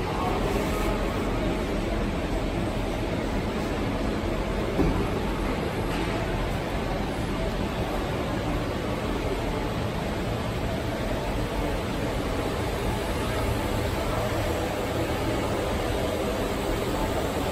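A machine hums steadily.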